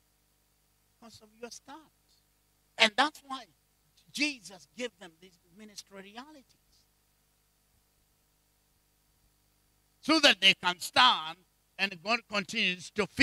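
A middle-aged man preaches with animation through a microphone, in bursts with long pauses.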